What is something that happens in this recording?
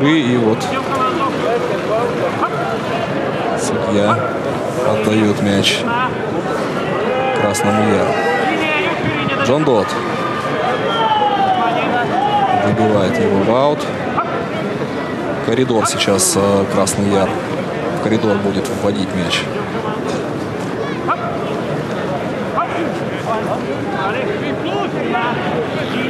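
A crowd murmurs in the distance in an open-air stadium.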